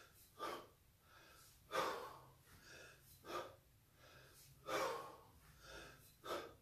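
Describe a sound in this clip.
A man breathes out hard in short, rhythmic bursts.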